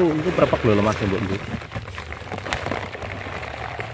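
Loose soil rustles and crumbles.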